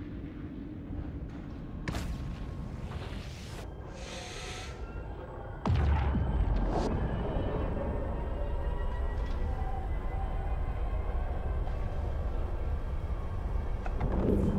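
A spaceship engine rumbles low and steady, then swells into a loud roar.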